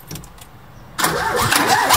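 A small car engine cranks and starts.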